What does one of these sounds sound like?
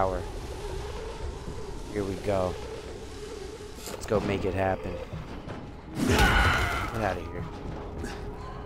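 A young man talks with animation into a microphone, close up.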